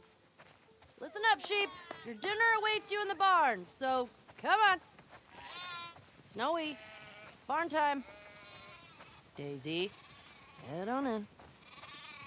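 Sheep bleat.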